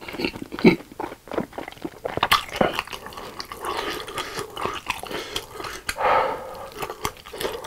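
Wooden chopsticks click against a glass bowl.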